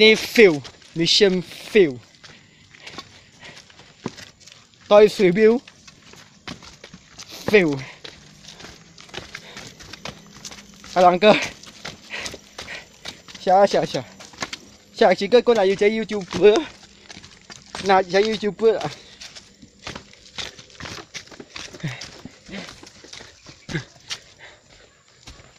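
Footsteps scuff and tap on stone steps and dry leaves.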